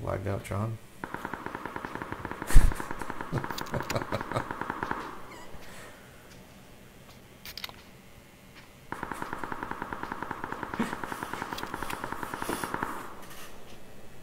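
Footsteps clatter quickly.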